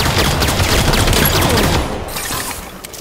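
Rapid gunfire blasts in a video game.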